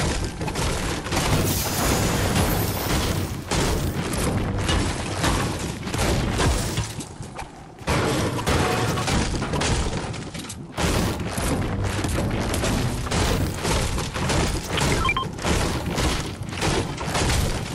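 A blade strikes and smashes metal objects repeatedly.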